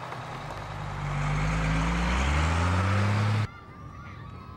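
A bus engine rises in pitch.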